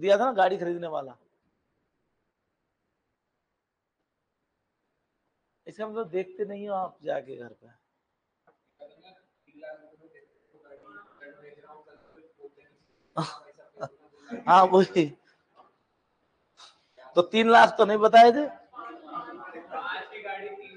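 A middle-aged man speaks calmly through a microphone, pausing often.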